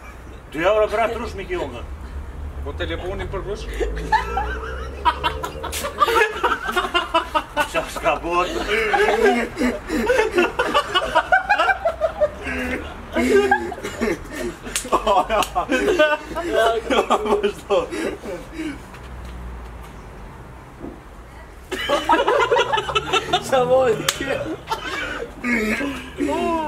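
Young men talk and joke with one another close by, outdoors.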